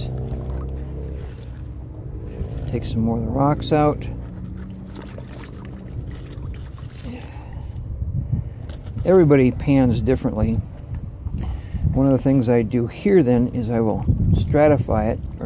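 Water sloshes and swirls in a plastic pan.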